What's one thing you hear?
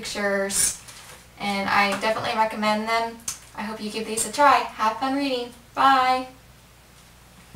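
A young woman speaks brightly and close to the microphone.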